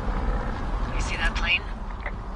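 A handheld radio crackles briefly.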